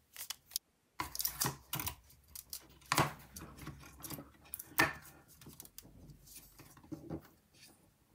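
A plastic part knocks and clicks as it is pressed into place.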